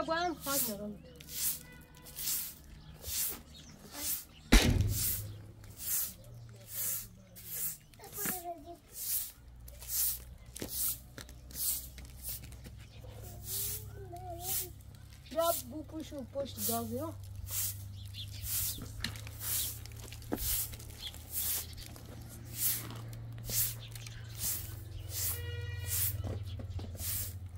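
A broom sweeps a hard floor in quick, rhythmic swishes.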